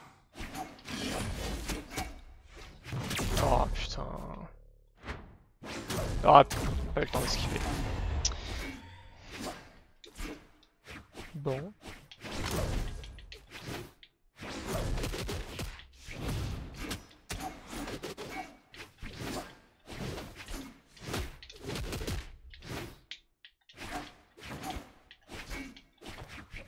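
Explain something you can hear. Game sound effects of punches, slashes and impacts burst out in quick succession.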